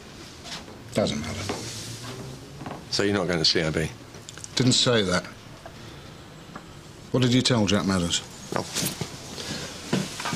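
A middle-aged man talks quietly nearby.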